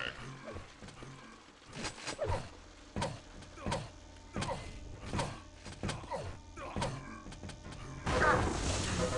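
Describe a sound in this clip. Footsteps patter quickly as a game character runs.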